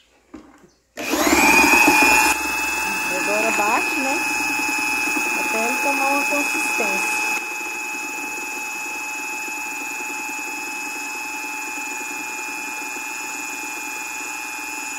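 An electric drill whirs steadily.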